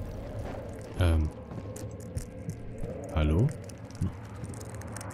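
A young man groans and exclaims loudly, close to a microphone.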